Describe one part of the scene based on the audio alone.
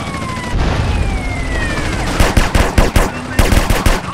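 An explosion booms with a roar of fire.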